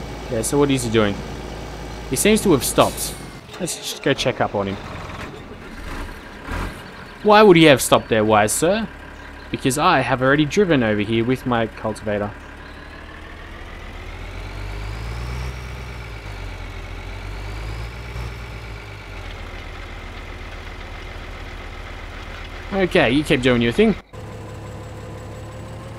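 A tractor engine drones steadily, swelling and easing as it drives.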